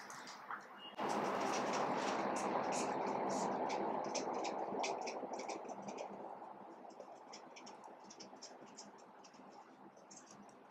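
A marker squeaks and scratches as it writes.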